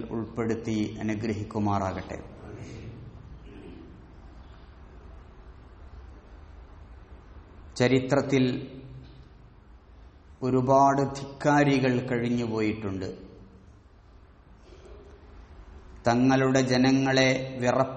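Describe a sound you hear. A man speaks with emphasis into a microphone, in bursts with pauses between.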